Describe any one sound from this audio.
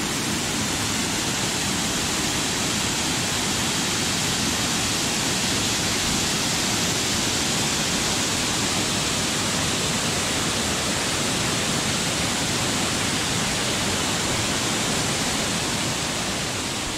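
A river rushes and churns over rocks.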